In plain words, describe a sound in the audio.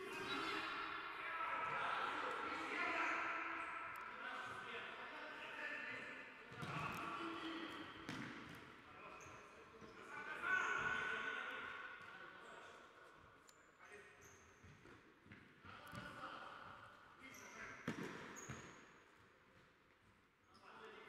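Players shout to each other across the hall.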